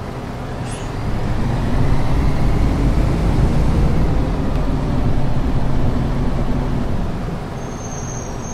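A bus engine grows louder and rumbles as the bus pulls away, then settles again.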